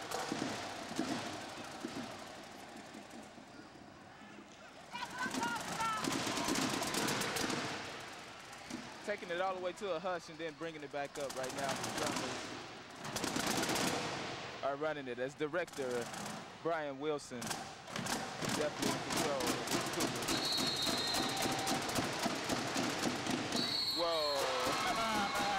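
Snare and tenor drums play rapid beats.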